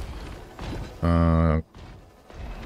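A short electronic tone sounds as a menu opens.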